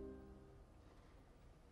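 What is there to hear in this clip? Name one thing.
An orchestra plays a held chord in a large hall, then falls silent.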